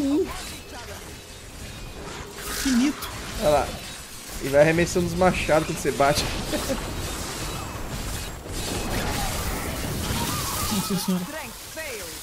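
Magic spells crackle and blast in a fast fight.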